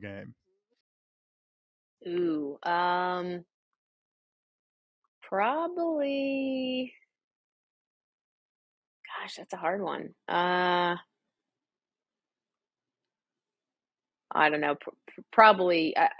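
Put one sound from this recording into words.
A woman talks with animation over an online call, in short bursts with pauses.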